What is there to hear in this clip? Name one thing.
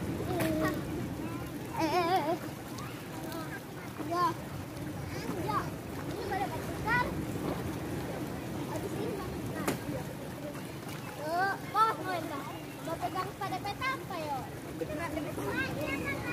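Young children shout and squeal playfully nearby, outdoors.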